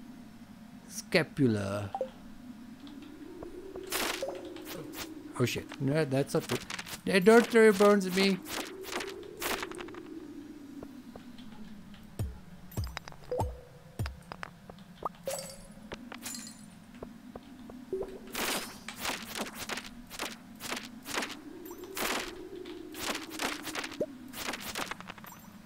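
Sharp game sound effects of a tool striking ring out repeatedly.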